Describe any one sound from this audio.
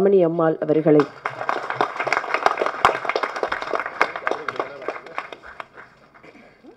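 A crowd applauds loudly in a hall.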